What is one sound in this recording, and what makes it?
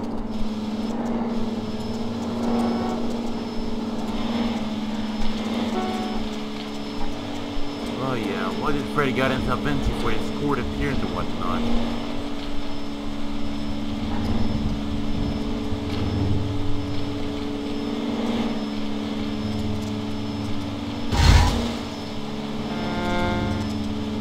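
A car engine hums steadily as a taxi drives along a street.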